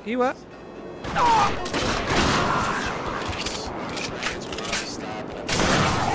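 Pistols fire rapid, booming shots.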